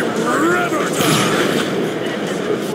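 An explosion booms in the air.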